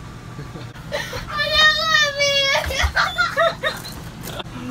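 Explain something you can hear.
A young boy shouts excitedly close by.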